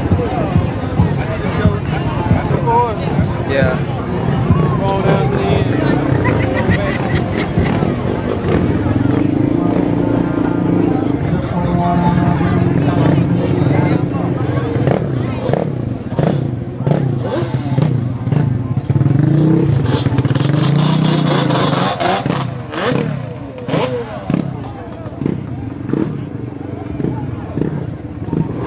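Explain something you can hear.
A crowd of people talks and shouts loudly.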